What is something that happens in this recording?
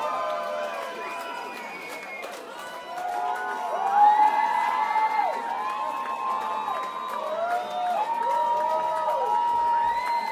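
A large crowd chatters and cheers in a crowded, echoing room.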